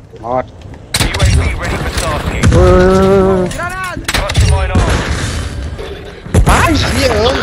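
A crossbow fires with a sharp thud.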